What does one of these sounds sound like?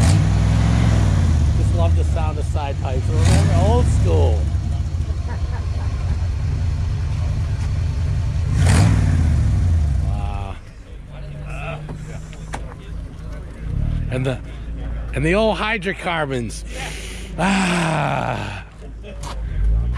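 A man talks casually nearby outdoors.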